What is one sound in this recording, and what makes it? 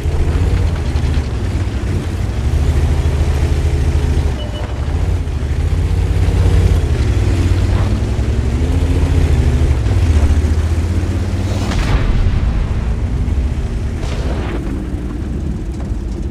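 A tank engine roars and rumbles, rising and falling in pitch as it drives.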